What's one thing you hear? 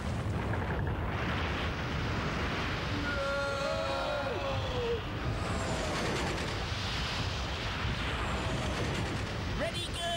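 Rocks rumble and tumble.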